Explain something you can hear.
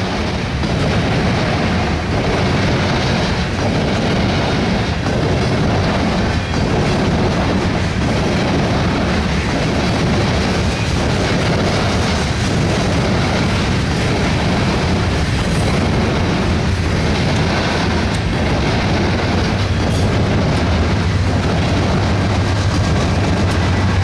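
Wheels clack rhythmically over rail joints.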